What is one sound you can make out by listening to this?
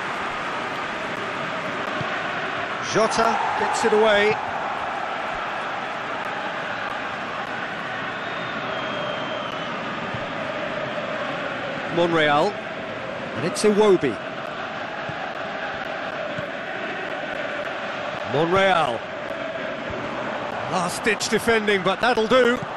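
A large stadium crowd roars and murmurs steadily.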